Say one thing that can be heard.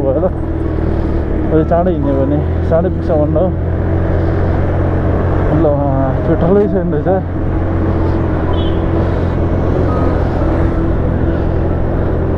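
A scooter engine hums steadily while riding along a road.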